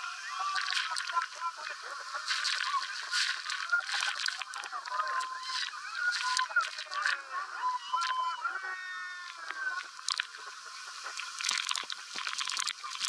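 A crowd of men and women scream and cheer with excitement close by.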